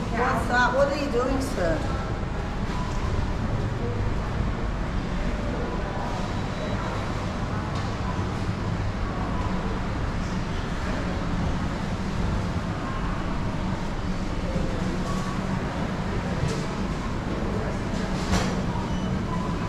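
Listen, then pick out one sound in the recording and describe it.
A steady low hum fills a large indoor space.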